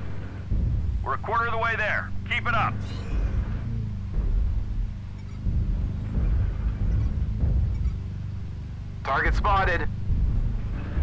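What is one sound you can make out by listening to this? A man speaks briefly into a nearby microphone.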